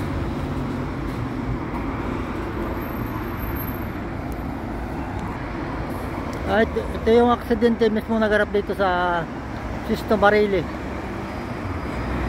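Road traffic rumbles steadily nearby outdoors.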